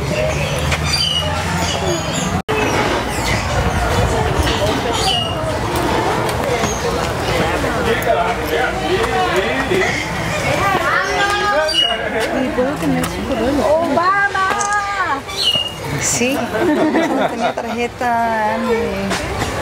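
A group of adults chatter nearby outdoors.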